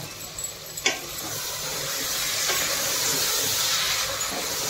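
Food sizzles in a hot pot.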